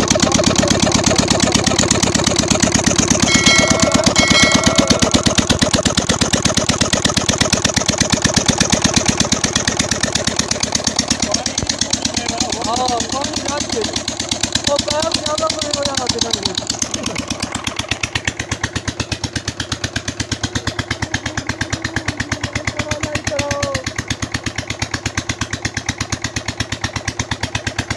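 A diesel engine chugs loudly and steadily close by.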